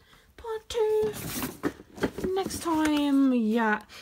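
Cardboard boxes rustle and scrape as a hand moves them.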